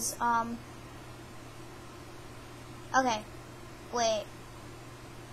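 A young girl speaks in short bursts close to a microphone.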